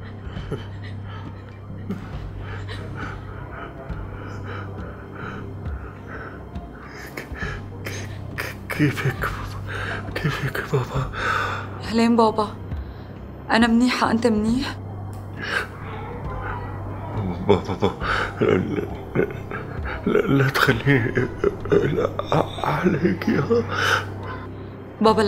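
An elderly man speaks weakly and strained into a phone, close by.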